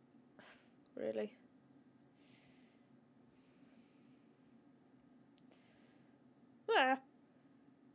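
A young woman exclaims briefly into a close microphone.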